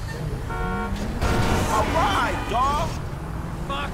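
Tyres screech on asphalt.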